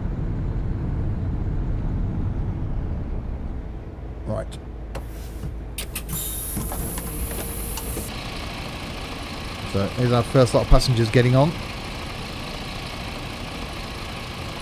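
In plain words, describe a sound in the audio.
A bus engine hums low and steady as the bus drives along.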